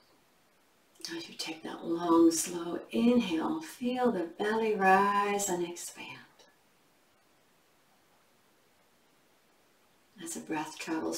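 A woman speaks calmly and slowly into a close microphone, with pauses.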